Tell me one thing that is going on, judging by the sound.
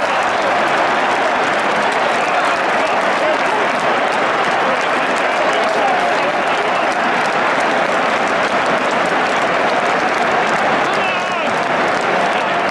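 Young men shout and cheer together outdoors.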